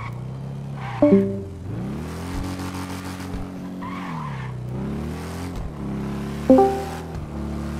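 A motorcycle engine pops sharply.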